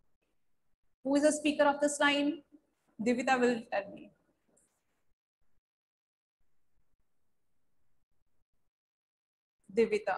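A young woman reads aloud calmly, close to a microphone, with pauses.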